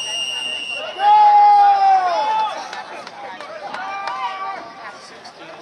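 Young men shout loudly across an open field.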